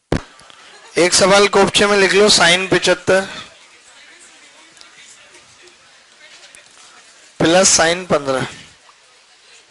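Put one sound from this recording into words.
A man speaks clearly into a microphone in short bursts.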